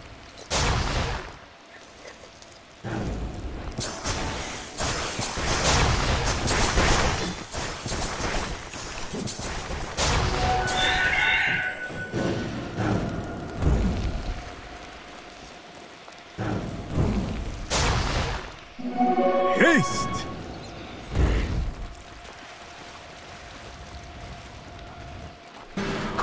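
Game spell effects whoosh and crackle in bursts.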